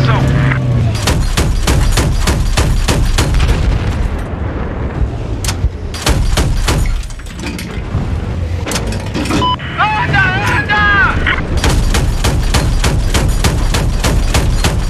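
A cannon fires in rapid bursts.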